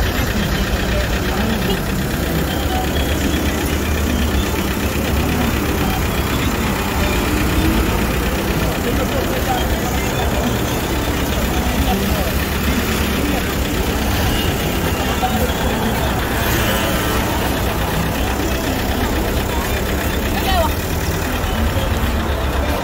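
Traffic rumbles past on a busy road outdoors.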